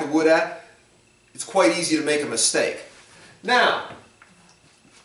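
A man speaks calmly and close by, in short bursts.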